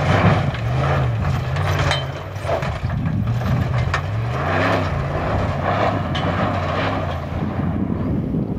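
A truck engine roars and revs as it speeds past.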